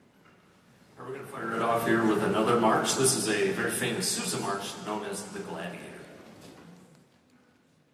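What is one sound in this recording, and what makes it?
A man speaks into a microphone through loudspeakers in a large echoing hall.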